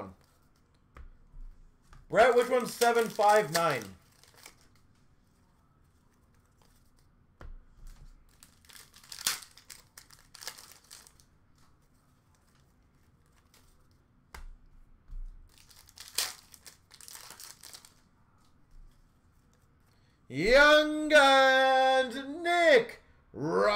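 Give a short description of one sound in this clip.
Trading cards rustle as they are shuffled through.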